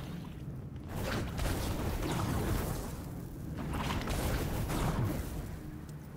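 A fiery blast bursts with a crackling roar.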